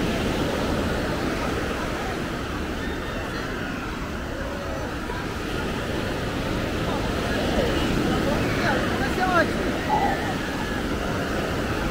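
Wind blows across an open beach.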